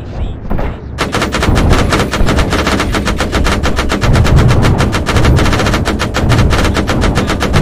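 A helicopter's rotor thumps rapidly and steadily close by.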